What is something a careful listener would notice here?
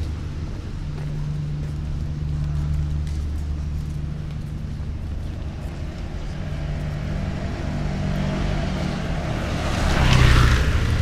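Outdoors, a steady low traffic rumble fills the air.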